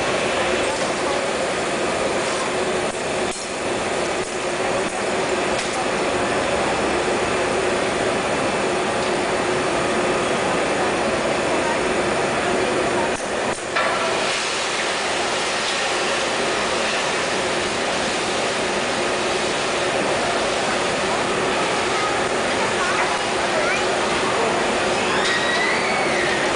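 Machinery roars steadily.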